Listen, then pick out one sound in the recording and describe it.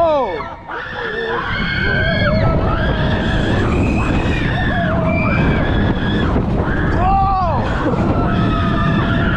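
Riders scream with excitement.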